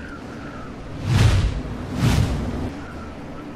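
A loud whooshing blast bursts twice.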